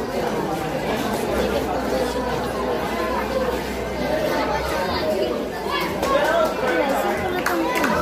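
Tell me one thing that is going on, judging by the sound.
A teenage boy cheers and shouts nearby.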